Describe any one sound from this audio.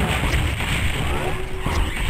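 A monster growls and snarls up close.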